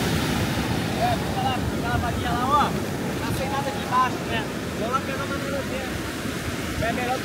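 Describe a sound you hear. A young man talks nearby.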